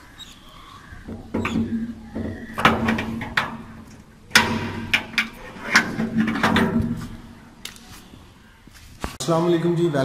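A padlock rattles and clinks against a metal gate.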